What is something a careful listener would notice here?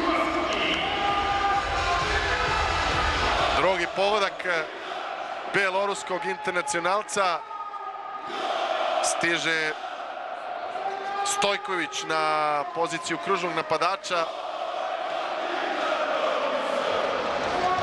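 A crowd cheers and roars in a large echoing arena.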